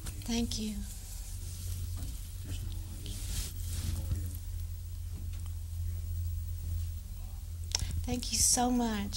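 A woman speaks brightly close to a microphone.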